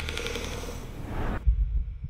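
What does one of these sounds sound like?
A man hushes softly with a short hiss.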